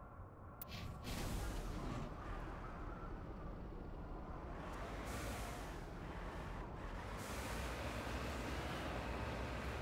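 A vehicle engine rumbles loudly as it drives over rough ground.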